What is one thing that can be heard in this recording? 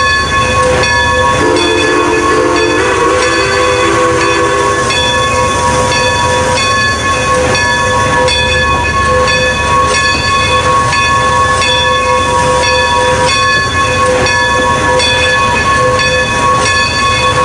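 Train wheels clatter over rails.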